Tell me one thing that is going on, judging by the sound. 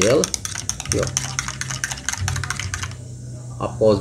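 A spoon clinks rapidly against a glass while stirring.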